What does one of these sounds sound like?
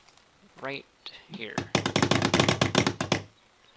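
Stones clack as they are set down on a pile.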